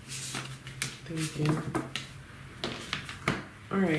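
A card is laid down on a cloth.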